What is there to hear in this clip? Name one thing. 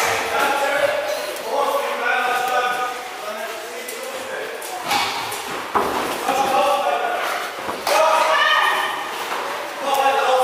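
Padded gloves thump as punches and kicks land.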